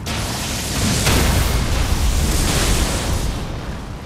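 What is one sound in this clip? Rock shards burst from the ground with a crash.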